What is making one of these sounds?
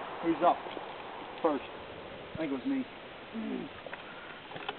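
A man talks loudly outdoors, close by.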